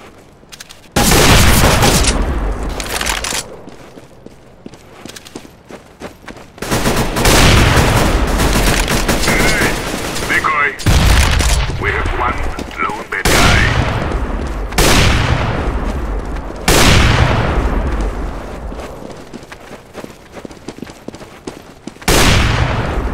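A rifle fires loud single shots that ring out and echo.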